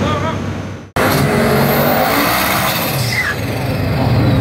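A drag racing car's engine roars loudly as it launches down the strip.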